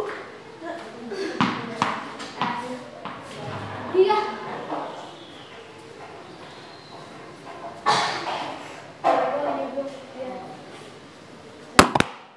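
A ball bounces on a hard floor in an echoing hall.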